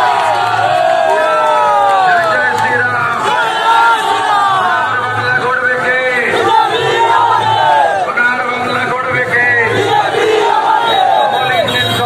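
A large crowd of men and women cheers and chants loudly nearby.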